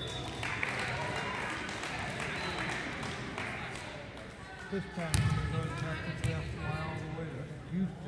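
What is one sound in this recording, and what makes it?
A volleyball is struck with a dull smack.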